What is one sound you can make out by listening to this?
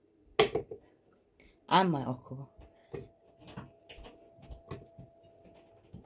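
Pieces of okra drop with light knocks into a plastic jar.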